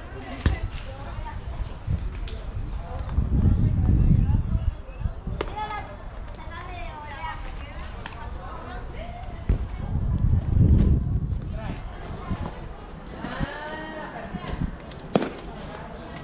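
A baseball smacks into a catcher's glove.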